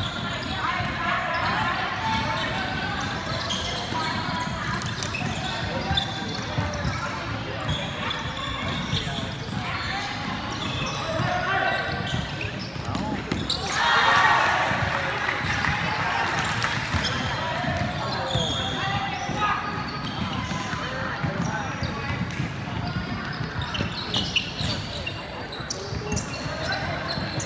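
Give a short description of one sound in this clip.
A crowd of spectators chatters and cheers in a large echoing hall.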